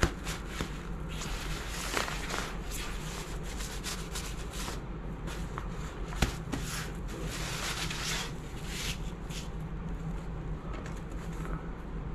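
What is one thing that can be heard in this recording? Small beads rattle and scrape under a child's hands.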